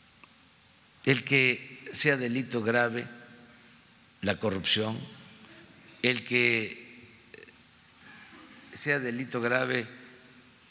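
An elderly man speaks calmly and slowly into a microphone, in bursts with pauses.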